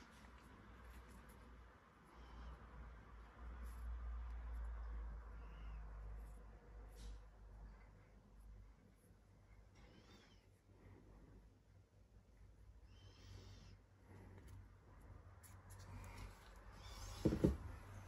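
Braided cord rubs and creaks softly between fingers.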